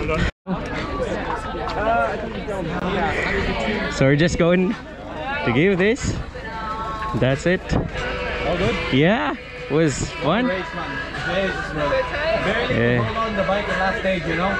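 A man talks casually close by.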